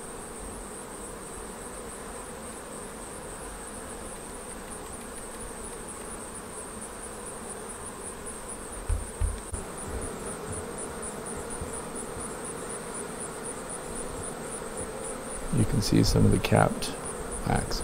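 Bees buzz steadily in a dense swarm.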